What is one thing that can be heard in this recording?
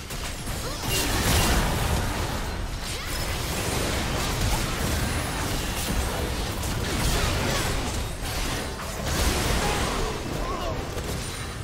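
Magic blasts and weapon strikes crackle and burst rapidly in a busy fight.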